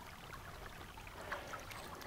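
Shallow water splashes softly as a hand moves through it.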